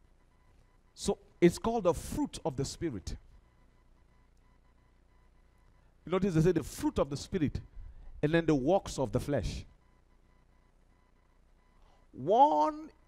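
A man speaks with animation into a headset microphone, in short bursts with pauses.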